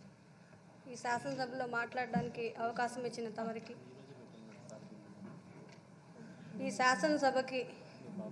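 A woman speaks earnestly into a microphone.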